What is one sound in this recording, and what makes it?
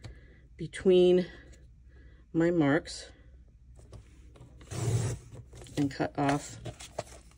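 A paper trimmer blade slides and slices through card.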